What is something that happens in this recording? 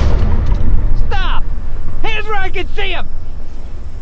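A man shouts commands loudly.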